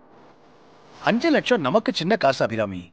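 An older man speaks firmly nearby.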